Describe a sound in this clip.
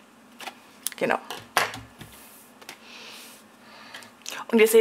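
A sheet of paper is laid down on a wooden table with a soft tap.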